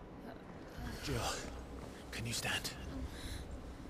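A man asks something quietly.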